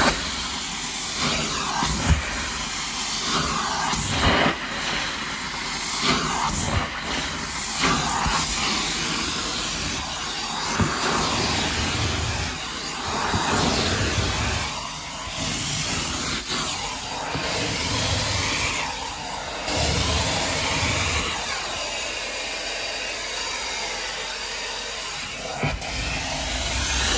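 A carpet cleaning wand hisses and slurps as it sucks along carpet.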